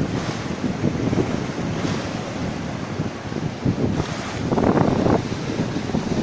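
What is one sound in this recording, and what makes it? Small waves wash onto the shore and break.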